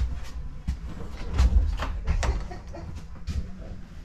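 A door clicks open close by.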